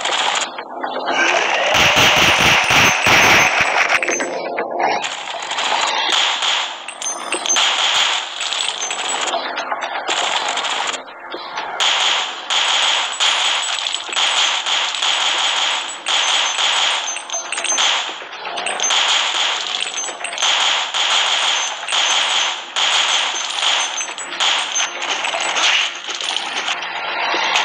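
Rapid pistol shots fire again and again.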